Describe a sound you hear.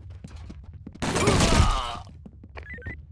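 Gunfire bursts out loudly.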